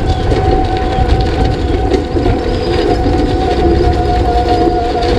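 Tyres rumble and crunch over a bumpy dirt road.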